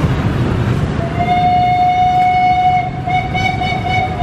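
A train horn blows loudly in two long blasts.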